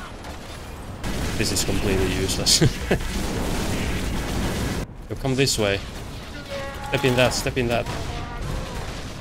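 Gunfire rattles and bangs in a video game.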